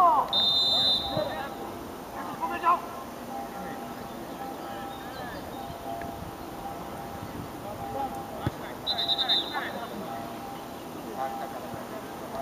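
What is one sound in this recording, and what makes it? Men's voices call and shout from across an open playing field.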